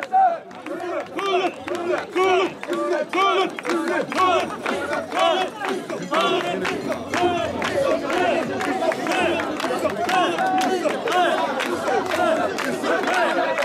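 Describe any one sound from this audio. Hands clap in time with the chanting.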